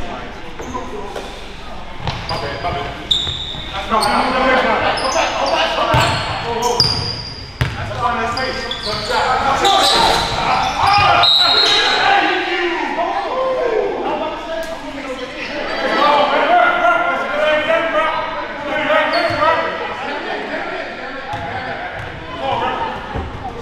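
Men call out and shout to each other across a large echoing hall.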